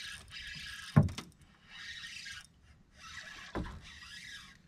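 Heavy thumps sound on a metal boat deck.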